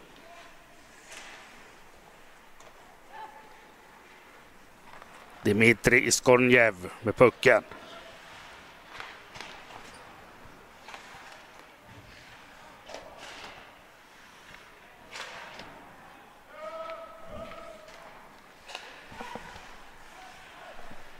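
Skates scrape and hiss on ice in a large echoing arena.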